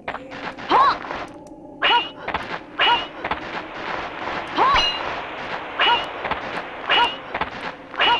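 Swords swing and clash with sharp metallic rings.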